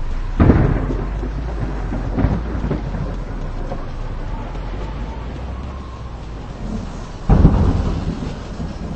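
A car engine hums low and steady.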